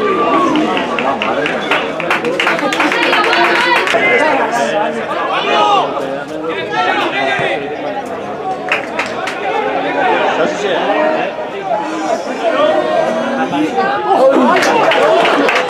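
Young male football players shout to each other outdoors.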